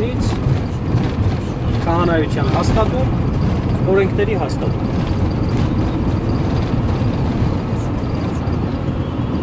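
A car engine hums steadily with tyres rumbling on the road, heard from inside the car.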